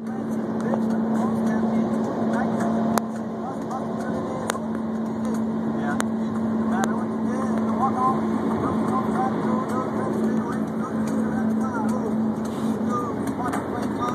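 Tyres hum on a highway, heard from inside a moving car.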